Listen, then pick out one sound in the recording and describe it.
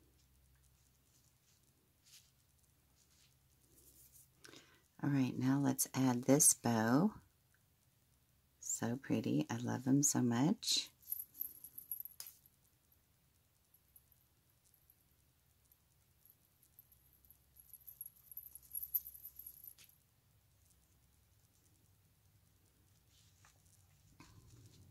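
Ribbon and lace rustle softly under handling fingers.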